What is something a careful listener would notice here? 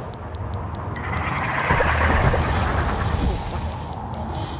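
A crackling energy blast bursts and roars.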